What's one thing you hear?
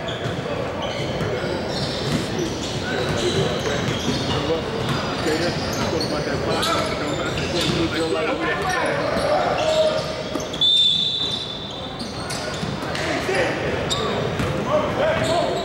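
Young men shout and call out to each other in an echoing gym.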